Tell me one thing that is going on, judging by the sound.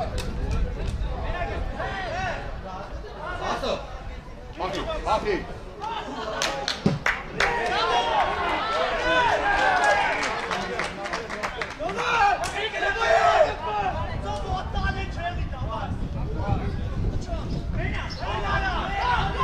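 Men shout and call out across an open outdoor field.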